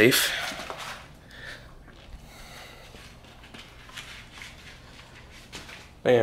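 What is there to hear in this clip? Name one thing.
Footsteps in slippers scuff on a hard floor.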